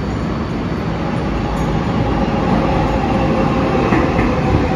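A subway train approaches and screeches on the rails as it pulls in.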